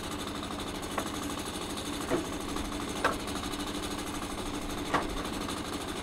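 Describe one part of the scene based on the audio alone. Wooden planks knock and clatter against each other as they are lifted off.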